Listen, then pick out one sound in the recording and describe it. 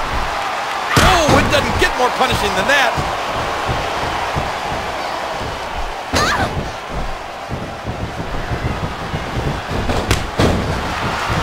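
Heavy thuds hit a wrestling ring mat as a body slams down.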